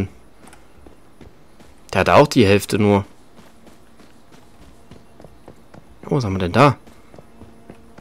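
Footsteps run over grass and gravel.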